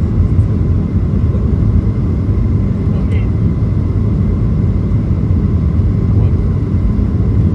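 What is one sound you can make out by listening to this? Jet engines roar with a steady, deep rumble inside an airliner cabin.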